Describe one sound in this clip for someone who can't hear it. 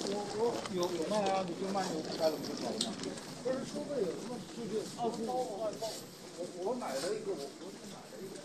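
A man talks nearby in a low voice.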